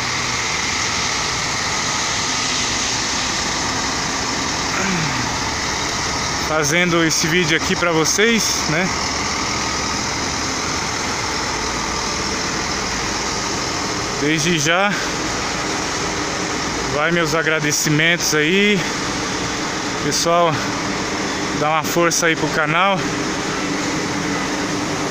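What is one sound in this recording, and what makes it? A bus engine rumbles steadily nearby.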